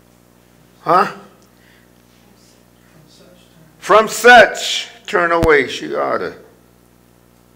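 An older man speaks with emphasis into a microphone, in short bursts with pauses.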